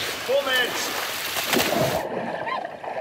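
Water splashes loudly as a person is thrown into it.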